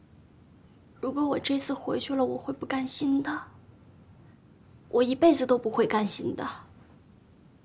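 A young woman speaks earnestly close by.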